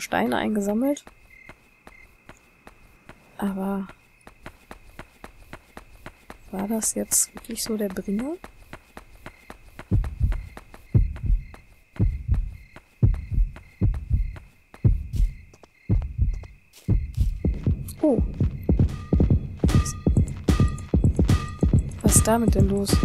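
Small footsteps tap steadily on pavement.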